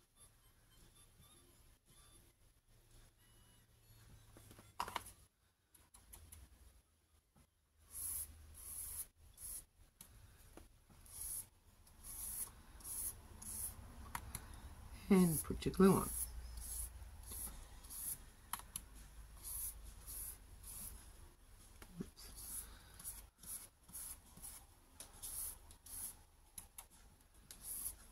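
Fingers rub and smooth a paper napkin onto paper with a soft rustle.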